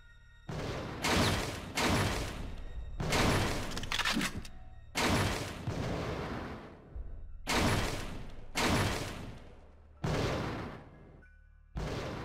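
Pistol shots ring out one after another, each echoing in a large hall.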